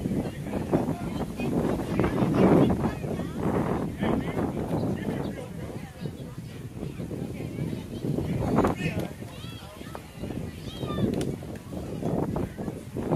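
Adults and children chatter and call out nearby, outdoors.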